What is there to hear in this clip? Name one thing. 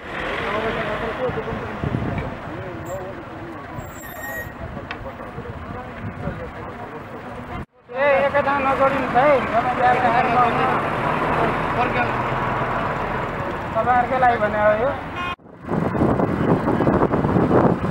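Motorcycle engines hum past.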